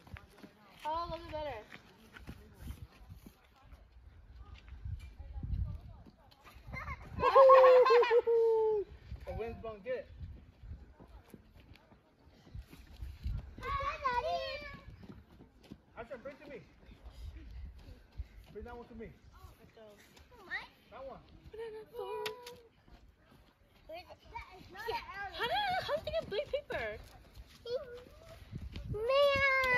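Young children call out and shout with high voices outdoors.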